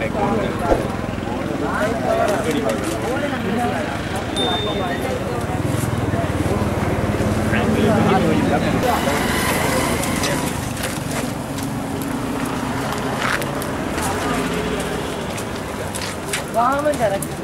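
Bent metal rattles and scrapes as a man pulls at a wrecked vehicle.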